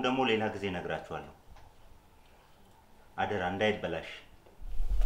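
A man speaks in a low, calm voice nearby.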